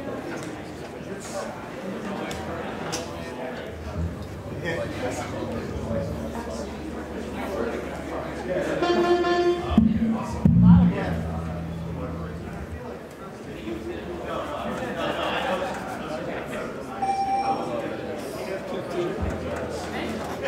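A live band plays music, heard loud and close.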